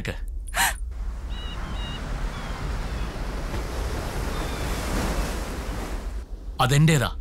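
Surf crashes on a rocky shore.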